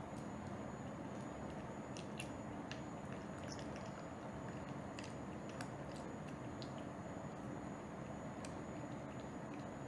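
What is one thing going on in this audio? A cat crunches dry food with small, faint clicks.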